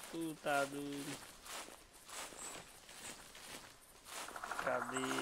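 Footsteps rustle through undergrowth on a forest floor.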